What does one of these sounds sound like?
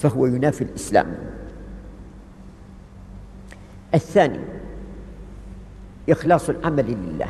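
An elderly man speaks calmly, in short bursts with pauses.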